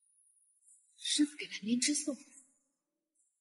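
A young woman speaks calmly and coldly, close by.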